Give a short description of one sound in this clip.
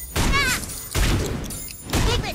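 A blow lands with a heavy impact.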